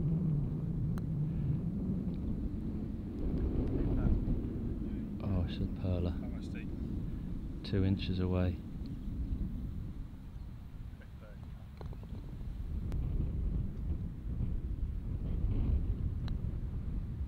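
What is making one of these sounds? A golf putter taps a ball.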